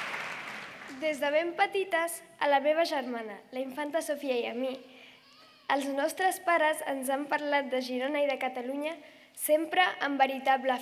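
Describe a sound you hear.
A young girl speaks calmly into a microphone over loudspeakers.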